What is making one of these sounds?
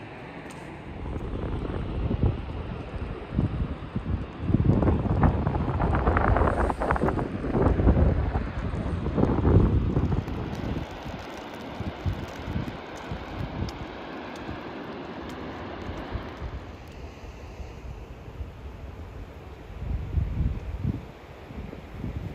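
Wind gusts buffet the microphone outdoors.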